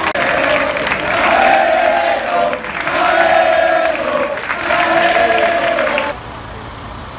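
A large crowd chants loudly in unison.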